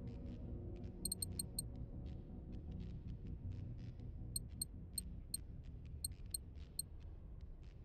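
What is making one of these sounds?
Short electronic menu beeps tick in quick bursts.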